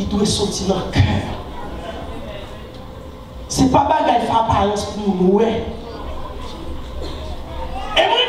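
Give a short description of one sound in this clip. A man preaches with animation through a microphone and loudspeakers in an echoing hall.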